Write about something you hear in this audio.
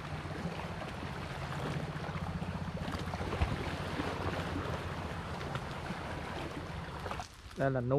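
Water splashes as a person wades through the shallows.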